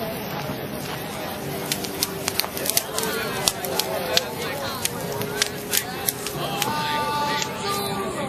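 A large fire roars and crackles with sharp pops.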